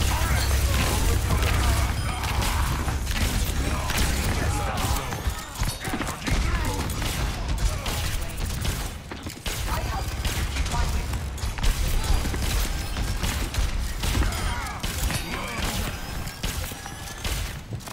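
Rapid gunfire rattles on and on.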